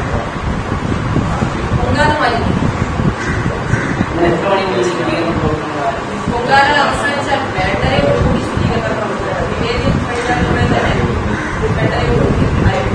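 A young woman speaks calmly into microphones.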